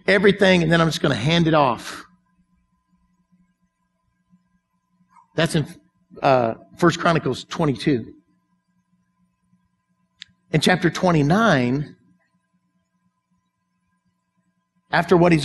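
An older man speaks with animation through a microphone, pausing often.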